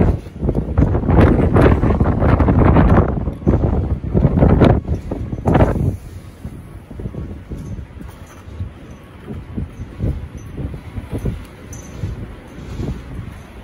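Rough sea waves crash and roar steadily.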